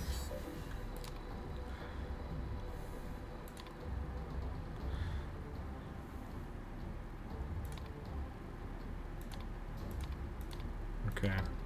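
Soft clicks sound as menu options are selected on a terminal.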